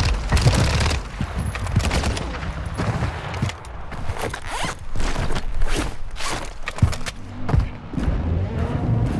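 Gunfire cracks in quick bursts.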